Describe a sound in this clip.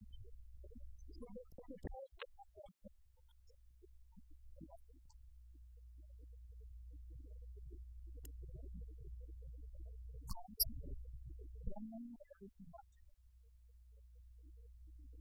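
A man speaks quietly and faintly through a microphone.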